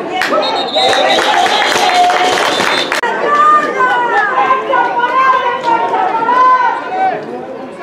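Young men shout and call out outdoors on an open field.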